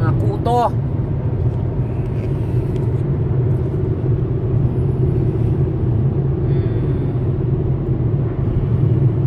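Tyres roar steadily on a smooth road.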